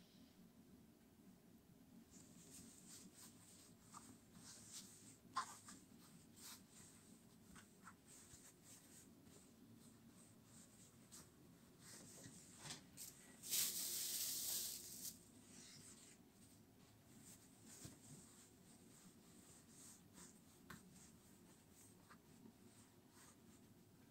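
Fabric rustles and crinkles as hands fold and smooth it.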